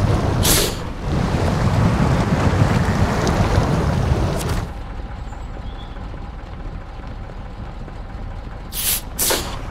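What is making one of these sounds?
A heavy truck engine rumbles and revs, then drops to a quieter idle.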